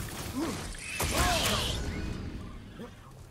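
A fiery explosion booms and rumbles.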